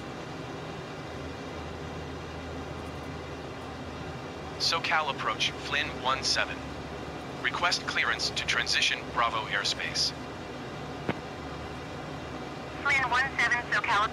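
A jet engine hums steadily in a low drone.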